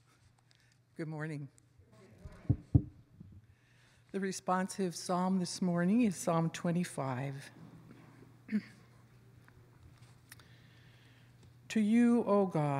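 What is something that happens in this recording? An elderly woman speaks calmly and slowly through a microphone in a large echoing room.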